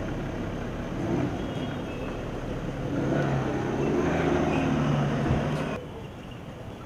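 A car engine hums as the car pulls away.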